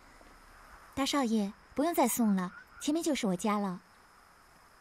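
A young woman speaks softly and politely, close by.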